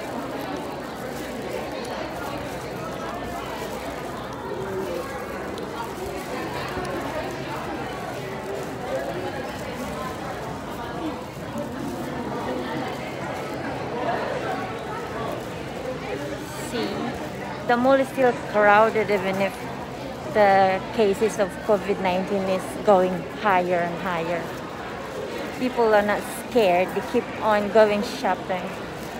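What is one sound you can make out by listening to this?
A crowd murmurs in a large echoing indoor space.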